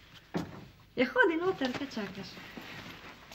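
A young woman speaks cheerfully nearby.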